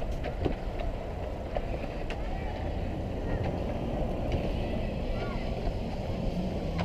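Ice skates scrape across outdoor ice.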